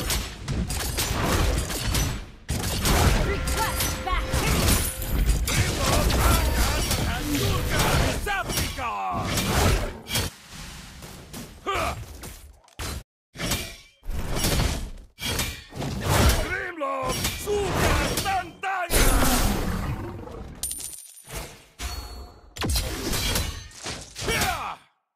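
Fighting sound effects from a game crash and whoosh in quick bursts.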